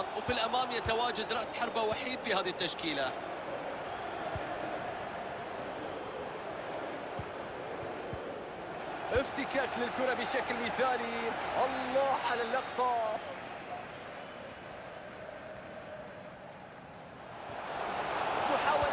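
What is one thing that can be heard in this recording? A large stadium crowd murmurs and cheers.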